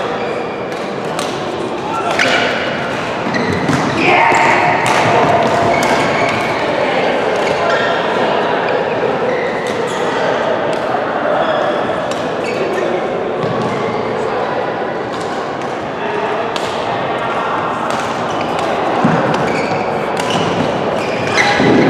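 The sounds echo in a large hall.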